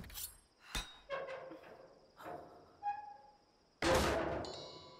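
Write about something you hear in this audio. A metal tool pries and clanks against wood.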